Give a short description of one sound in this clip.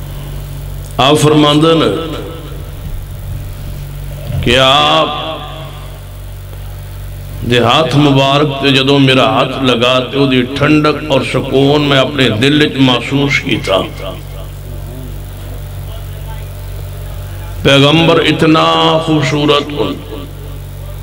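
An elderly man chants through a microphone and loudspeakers, in long melodic phrases with pauses.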